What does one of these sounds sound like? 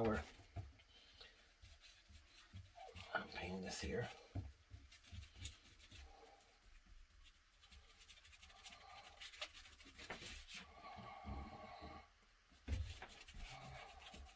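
A brush scrubs glue across leather with soft strokes.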